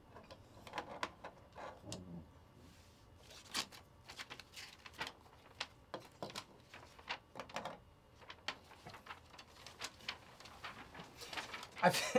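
Plastic card wrappers crinkle and rustle close by.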